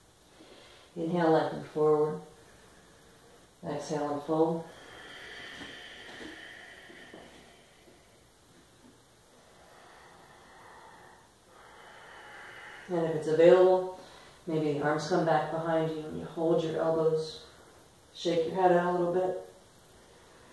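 A woman speaks calmly and clearly nearby, giving instructions in short phrases.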